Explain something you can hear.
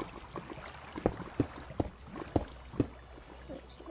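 Blocks are placed with short, soft knocks, one after another.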